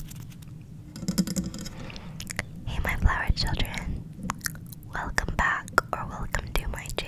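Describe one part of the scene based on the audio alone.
A young girl whispers softly and very close to a microphone.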